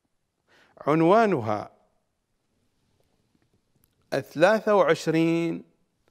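A middle-aged man speaks with animation close to a microphone, pausing between phrases.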